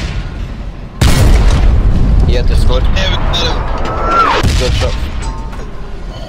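A tank cannon fires with a loud, echoing boom.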